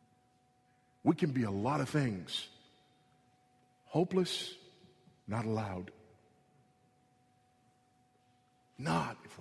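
A man speaks slowly and forcefully into a microphone, with pauses.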